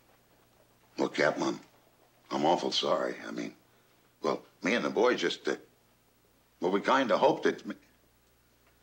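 Another man answers calmly and firmly, close by.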